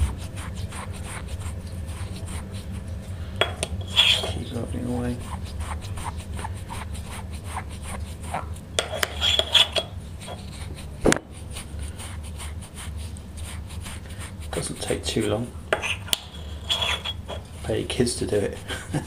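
Fingers rub and scrape a small metal coin close up.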